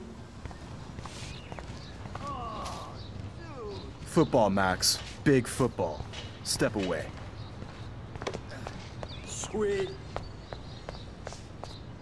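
Footsteps tap lightly on pavement.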